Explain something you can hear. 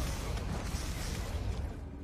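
A magic spell crackles and shimmers.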